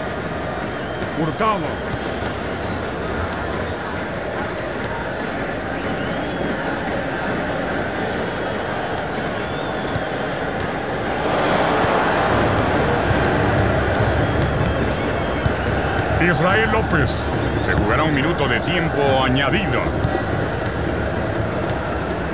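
A large stadium crowd roars and chants steadily, swelling louder partway through.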